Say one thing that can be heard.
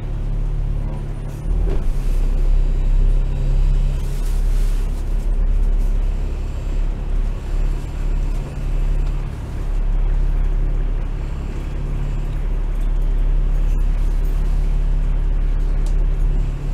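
A tram engine hums low and steady while rolling along.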